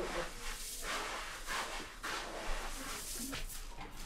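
Ground grain rustles as a hand scoops it from a bowl.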